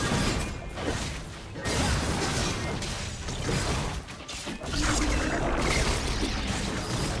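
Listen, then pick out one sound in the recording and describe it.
Video game spell effects crackle and boom in a busy fight.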